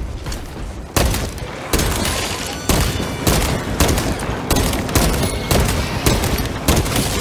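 A pistol fires repeated loud shots.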